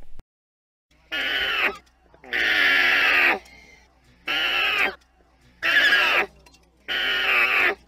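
An alpaca makes repeated high humming calls.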